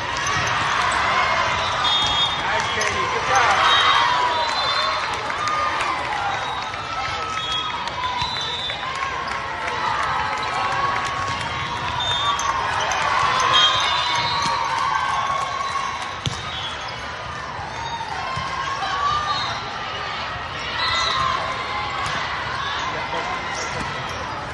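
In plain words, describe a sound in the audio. A crowd chatters and cheers in a large echoing hall.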